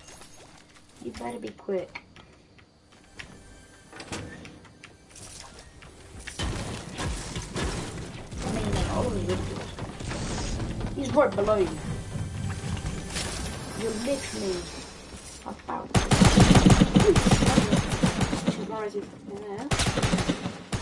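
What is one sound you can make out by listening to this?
A teenage boy talks with animation close to a microphone.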